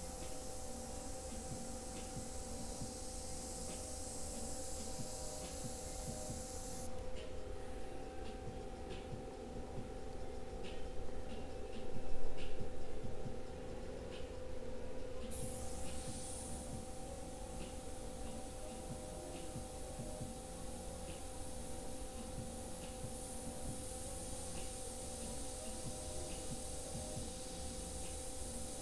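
An airbrush hisses steadily as it sprays.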